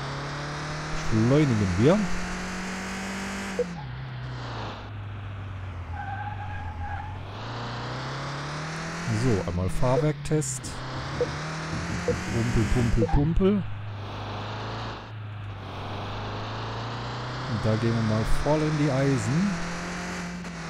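Tyres squeal on the road surface.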